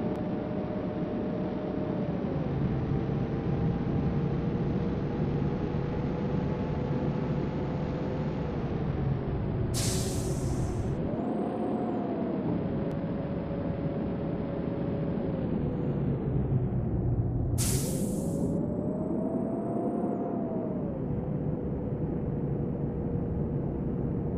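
A bus engine hums steadily, rising and falling in pitch as the bus speeds up and slows down.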